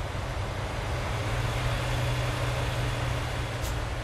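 A heavy truck rumbles past on a road.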